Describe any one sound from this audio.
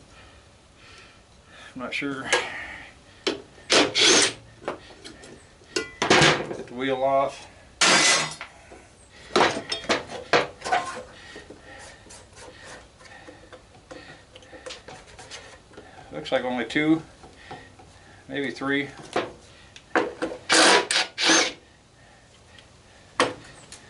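Plastic parts knock and scrape against each other.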